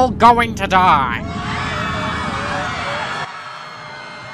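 A cartoon character screams in panic.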